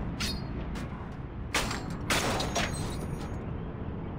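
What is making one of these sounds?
A metal padlock clanks.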